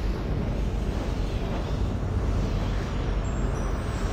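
Wind rushes past as something flies.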